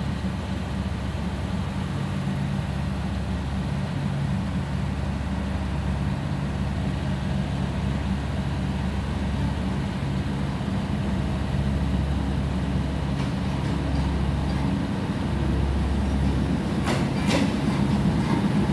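A diesel train engine rumbles steadily as the train slowly approaches.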